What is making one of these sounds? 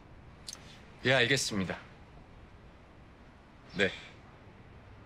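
A young man talks quietly on a phone.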